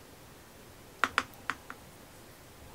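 A paintbrush taps and clicks against a plastic paint pan.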